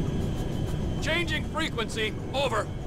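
A young man speaks close into a microphone.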